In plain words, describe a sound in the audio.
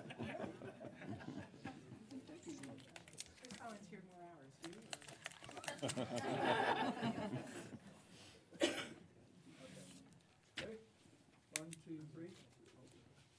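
A crowd of people chats and murmurs in a room.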